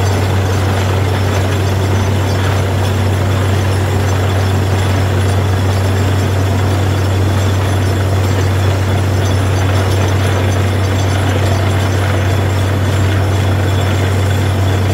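A drill rig rumbles and grinds into the ground.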